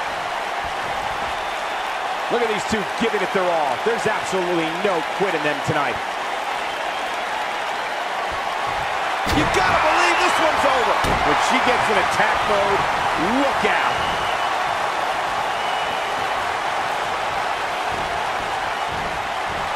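A large crowd cheers and murmurs steadily in a big arena.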